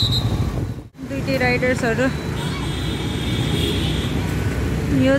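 Traffic hums along a busy street.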